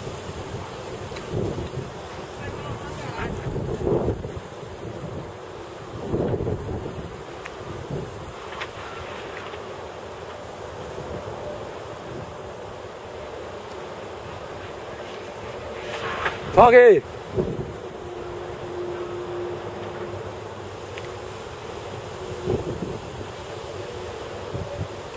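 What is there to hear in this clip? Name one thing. Wind gusts buffet outdoors.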